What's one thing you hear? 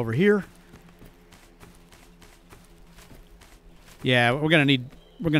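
Footsteps crunch softly through grass and snow.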